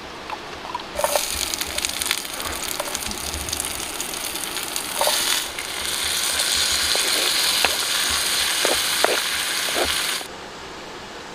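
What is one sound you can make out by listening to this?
Onions sizzle and crackle in hot oil.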